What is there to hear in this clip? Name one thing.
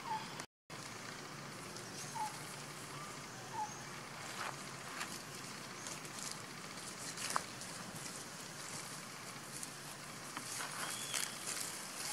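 A monkey rustles through grass and dry leaves.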